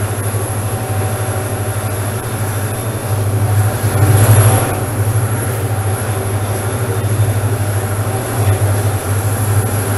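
A diesel locomotive engine throbs loudly and steadily.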